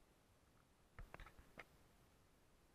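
Plastic connectors click and clack as they are handled.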